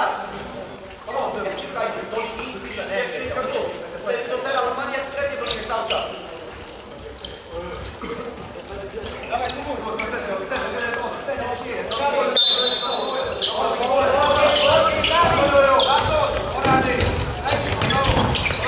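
A ball thuds as it is kicked on a hard court.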